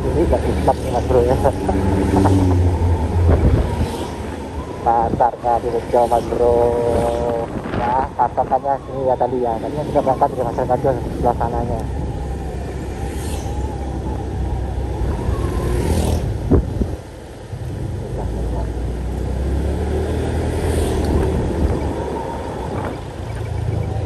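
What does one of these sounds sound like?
Motorbike engines buzz and hum as they ride past close by.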